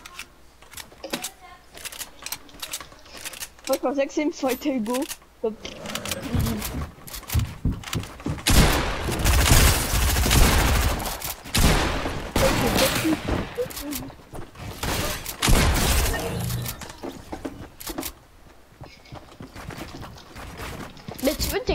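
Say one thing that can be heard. Wooden building pieces snap into place with quick clattering knocks.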